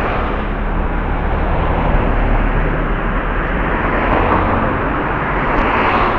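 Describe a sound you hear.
A car drives past slowly on a nearby street.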